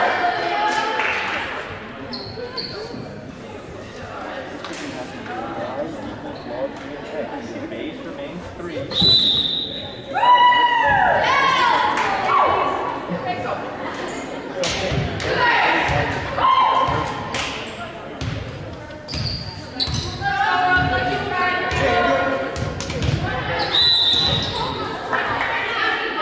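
A volleyball thuds as it is hit and bounces.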